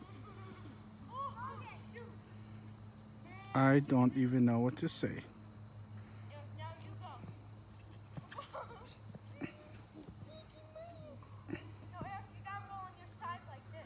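A dog runs through grass.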